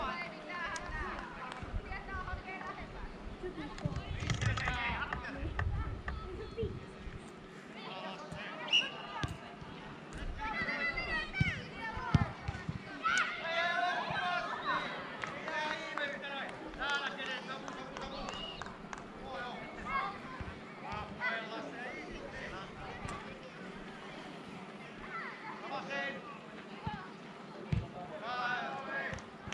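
Young girls shout and call to each other across an open field.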